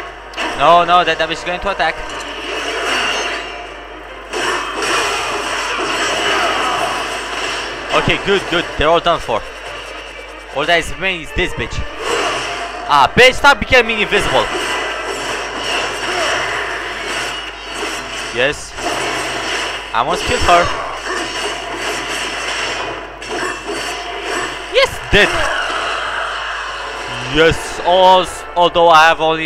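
A heavy blade swings and slashes with sharp impacts.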